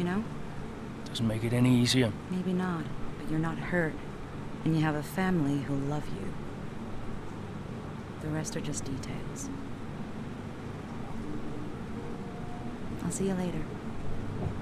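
A young woman speaks, close by.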